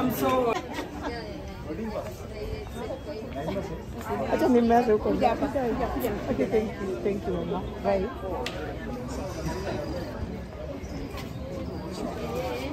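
A woman speaks excitedly close by.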